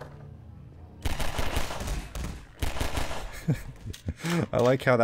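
A pistol fires several times.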